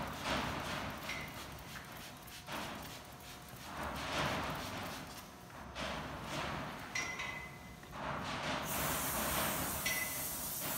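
A pump spray bottle hisses in short bursts onto a mule's coat.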